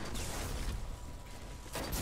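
An electric blast crackles sharply.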